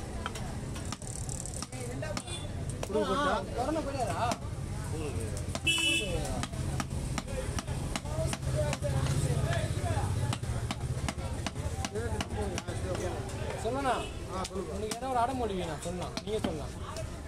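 A knife chops through fish on a wooden block with sharp knocks.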